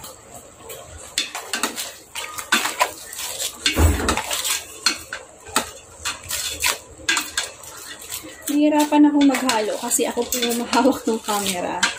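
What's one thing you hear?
A spoon scrapes and clinks against a metal pot as food is stirred.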